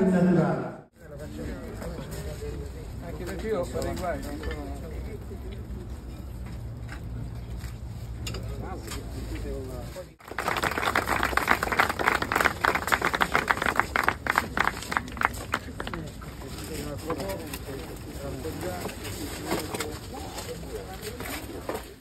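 People murmur and talk quietly outdoors.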